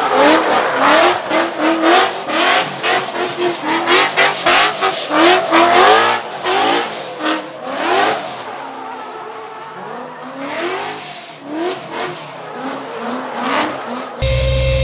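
A car engine revs hard and bounces off the limiter in quick bursts.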